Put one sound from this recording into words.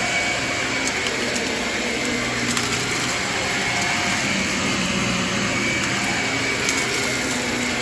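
A vacuum cleaner roars steadily as it runs over carpet.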